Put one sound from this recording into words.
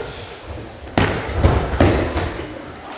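Bodies thud onto mats.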